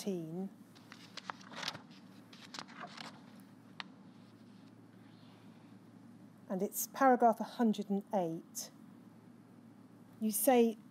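A woman speaks calmly into a microphone, pausing between phrases.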